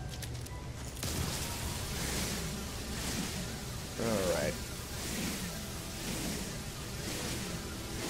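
A laser weapon hums steadily as it fires.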